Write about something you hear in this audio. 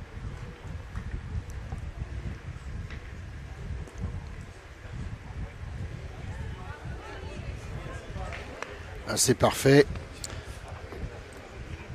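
A crowd of spectators murmurs and chatters in the distance.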